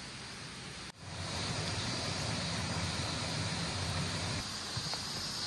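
Water flows and splashes over rocks in a stream.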